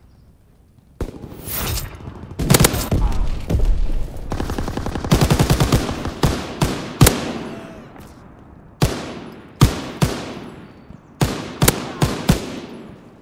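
A machine gun fires loud, rapid bursts.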